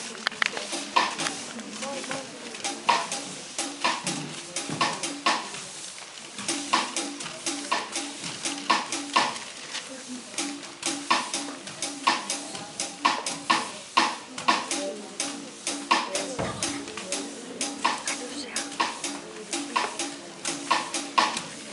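Brooms brush and scrape across a hard floor.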